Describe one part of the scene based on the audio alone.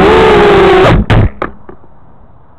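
A small aircraft crashes into the ground with a few hard knocks.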